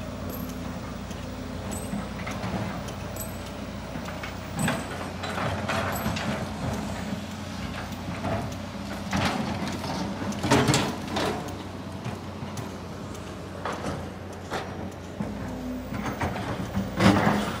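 Heavy diesel excavators rumble steadily nearby.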